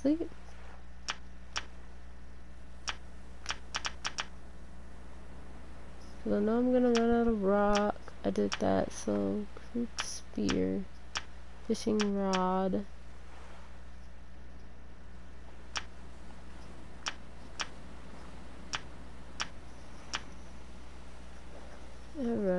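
Soft menu clicks tick repeatedly.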